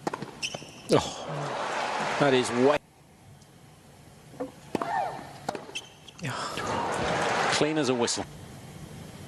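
A crowd applauds and cheers.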